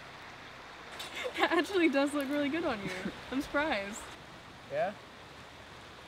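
A young woman talks and laughs softly nearby.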